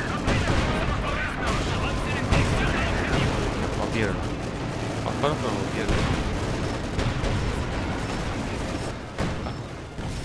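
Explosions and gunfire boom and crack repeatedly.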